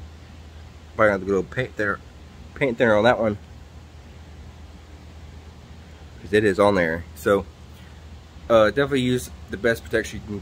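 A young man talks casually, close by, in short bursts.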